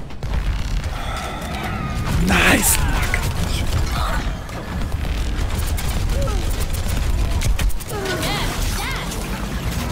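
Gunshots and energy blasts from a video game fire in quick bursts.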